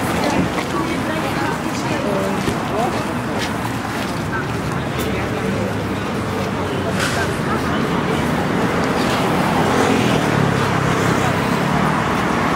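Young people chatter nearby.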